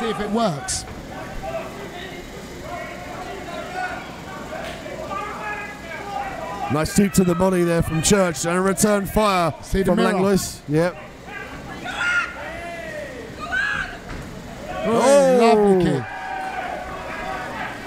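A crowd of spectators murmurs throughout.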